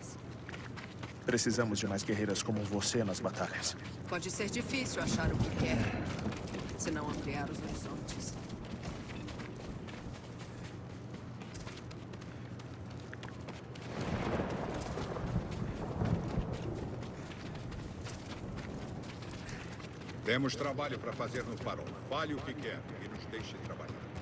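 Footsteps run over dirt and wooden planks.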